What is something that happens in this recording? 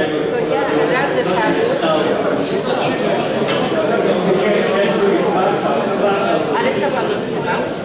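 A crowd of older men and women chatter in an echoing hall.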